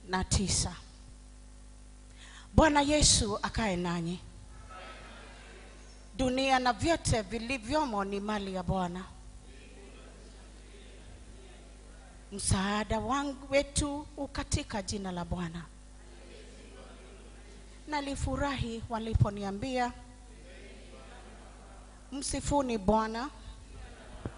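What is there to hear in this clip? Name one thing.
A man speaks in bursts through a loudspeaker in a large echoing hall.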